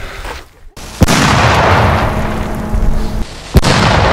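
A firework hisses loudly.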